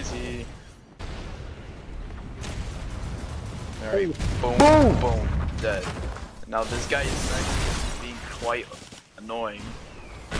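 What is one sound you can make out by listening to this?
Stone pavement cracks and crashes apart.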